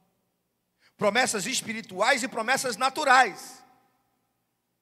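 A middle-aged man speaks with animation through a microphone in a room with a slight echo.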